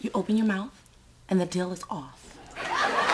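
A young woman speaks playfully up close.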